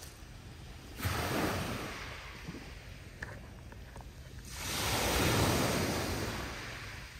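Small waves wash softly onto a pebble beach.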